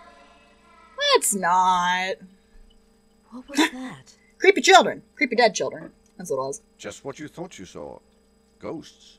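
A young woman talks and laughs with animation close to a microphone.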